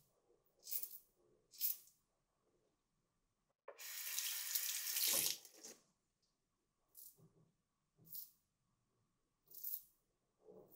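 A razor scrapes across stubble in short, quick strokes.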